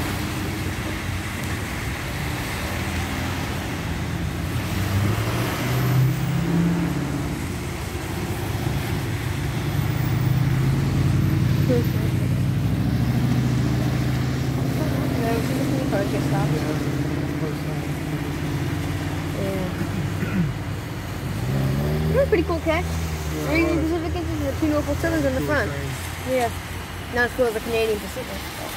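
Cars and trucks drive past on a wet road, tyres hissing.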